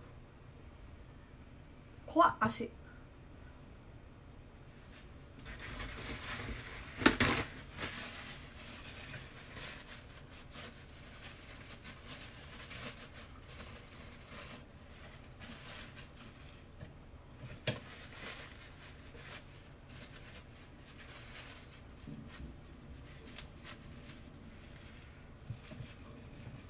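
Hands rustle and knock against things close by.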